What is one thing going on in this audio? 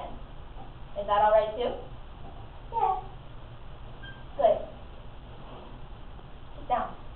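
A young woman speaks in short phrases nearby.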